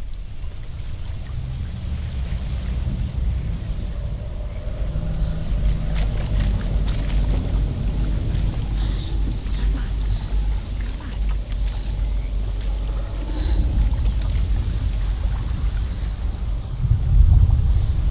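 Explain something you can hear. Footsteps tread on dirt and dry leaves.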